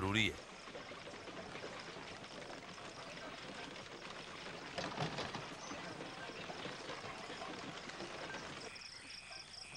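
Wooden cart wheels rumble and creak over rough ground.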